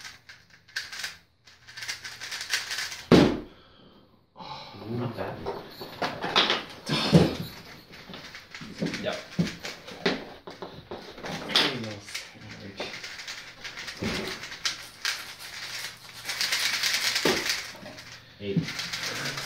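Plastic puzzle cubes click and rattle as they are turned quickly.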